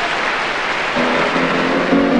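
An orchestra starts playing.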